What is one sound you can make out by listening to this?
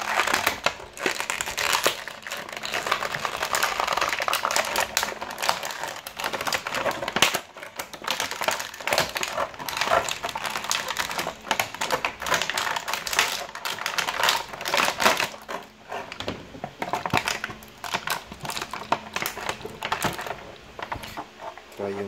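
Thin plastic packaging crinkles and crackles as hands handle it.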